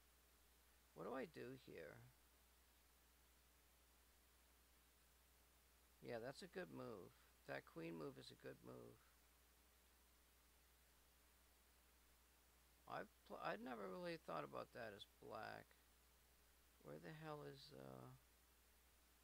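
A man talks calmly and closely into a microphone, in short bursts with pauses.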